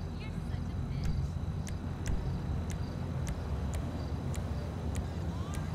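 Short, sharp menu clicks tick at a steady pace.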